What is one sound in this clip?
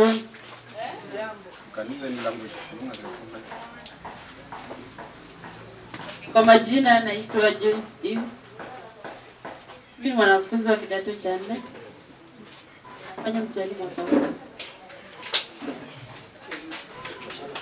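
A young woman speaks into a microphone over a loudspeaker, with pauses.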